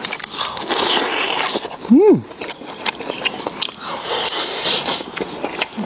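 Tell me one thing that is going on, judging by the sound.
A man bites into food and chews noisily, with crunchy, wet sounds.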